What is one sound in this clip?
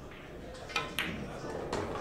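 Billiard balls clack together.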